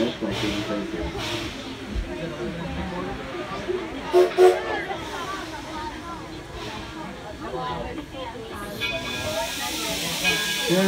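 A small train rumbles along a track outdoors.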